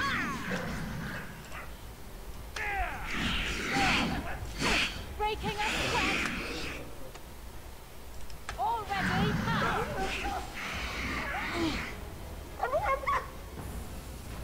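Weapons clash and strike during a fast game battle.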